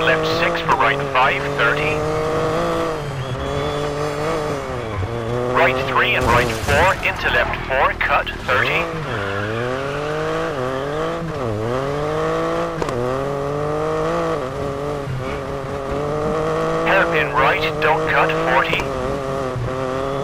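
A rally car engine revs hard, rising and dropping in pitch as it shifts gears.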